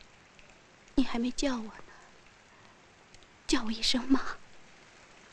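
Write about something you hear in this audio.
A young woman speaks earnestly nearby.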